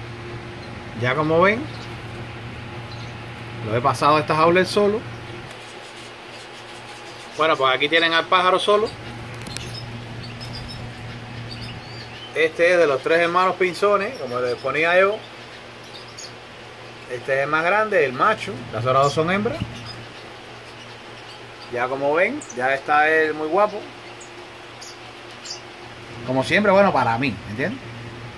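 A small songbird sings in short, rapid warbling bursts, close by.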